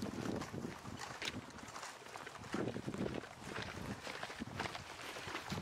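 Heavy footsteps crunch on dry grass.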